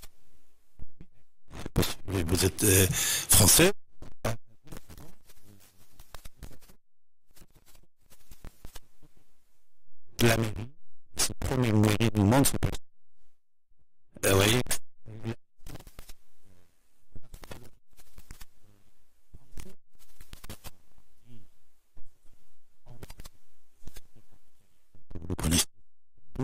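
An elderly man talks with animation into a close microphone.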